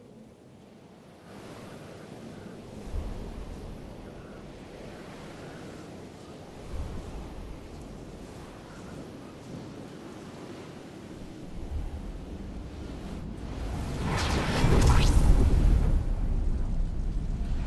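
Wind rushes past a gliding figure and swells louder near the end.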